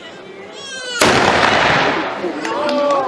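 A musket fires with a loud bang that echoes.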